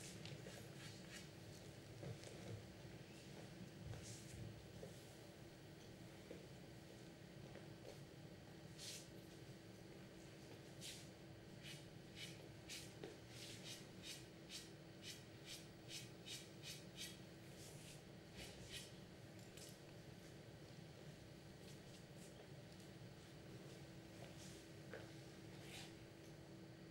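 Billiard balls click sharply against each other.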